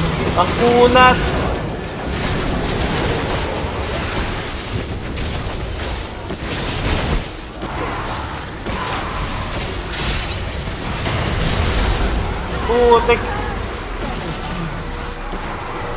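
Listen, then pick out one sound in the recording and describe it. Magic spell effects whoosh, crackle and burst in a fast game battle.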